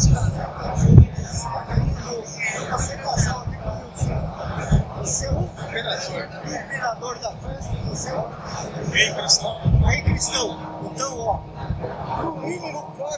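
A woman chats cheerfully.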